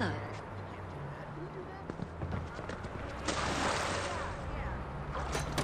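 Water laps against a boat hull.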